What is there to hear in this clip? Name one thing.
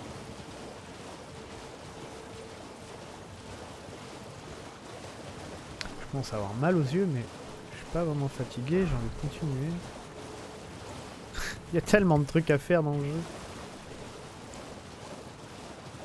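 Water splashes as a figure wades steadily through a shallow stream.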